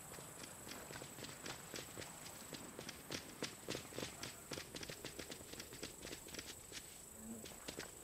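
A helicopter's rotor chops steadily nearby.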